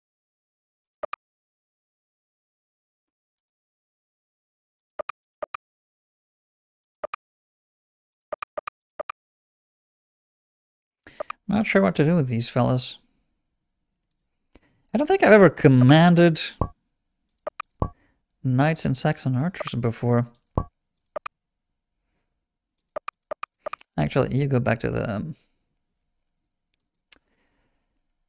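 Short clicks of a computer game sound now and then.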